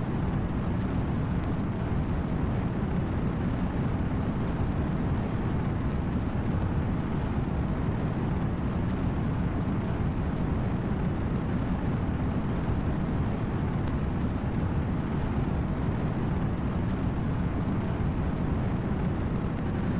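A rocket engine roars steadily with a deep rumble.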